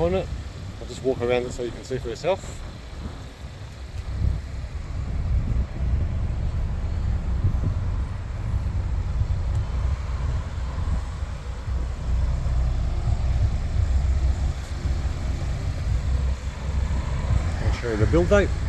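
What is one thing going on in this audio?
Wind buffets steadily outdoors.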